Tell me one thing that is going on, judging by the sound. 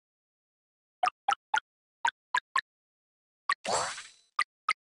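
Short electronic blips pop one after another.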